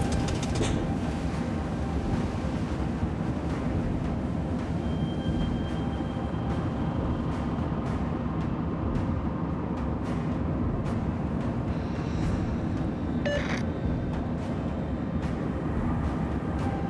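A submarine's engine rumbles steadily.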